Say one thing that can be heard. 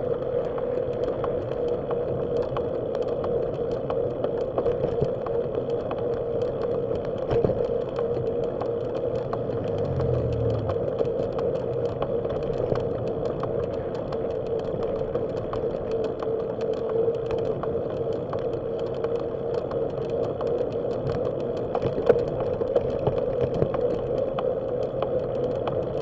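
A vehicle drives steadily along a road with a constant motor hum and road noise.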